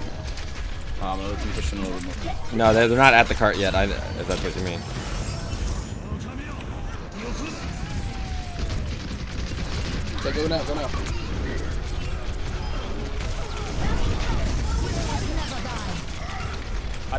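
Game gunfire and effects crackle steadily.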